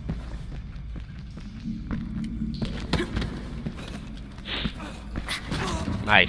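Footsteps thud on hard stairs.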